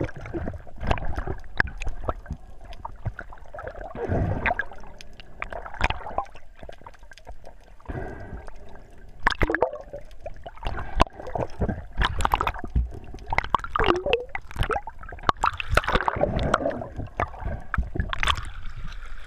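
Water gurgles and rumbles, muffled underwater.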